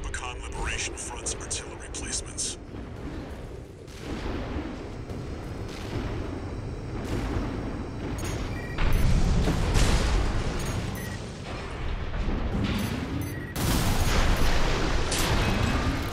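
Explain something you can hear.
A mech's thrusters roar as it boosts through the air.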